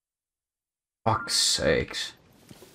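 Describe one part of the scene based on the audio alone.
A man talks into a close microphone.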